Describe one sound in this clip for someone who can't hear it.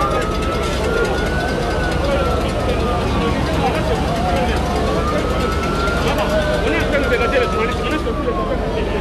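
A crowd of men and women murmurs and talks outdoors.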